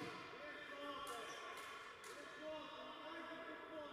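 A ball thumps off a player's foot in a large echoing hall.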